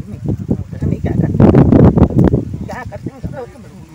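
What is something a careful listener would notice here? A middle-aged woman speaks into a microphone outdoors.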